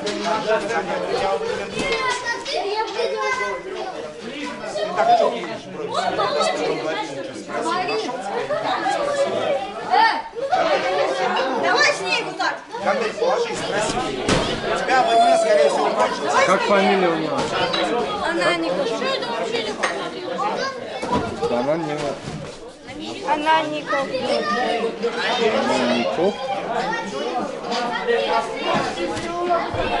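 Boys and young men chatter and talk over one another in an echoing hall.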